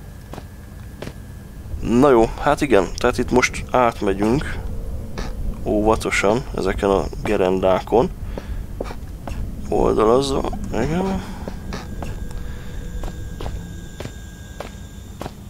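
Footsteps tread steadily across hard floors.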